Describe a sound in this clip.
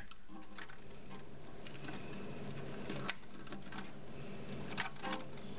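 A gloved hand scrapes and knocks against a plastic pipe.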